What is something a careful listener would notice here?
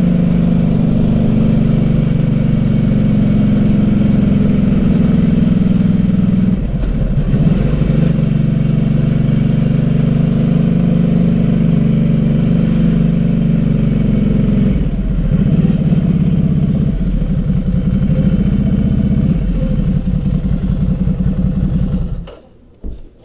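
A motorcycle engine hums steadily, rising and falling in pitch.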